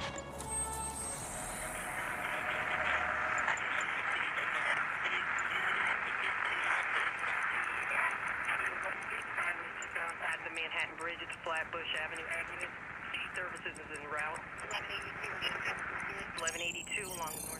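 An electronic signal hisses and warbles, shifting as it is tuned.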